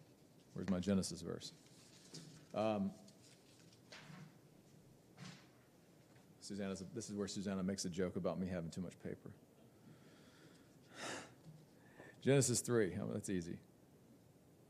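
A man speaks calmly into a microphone, reading out in short phrases.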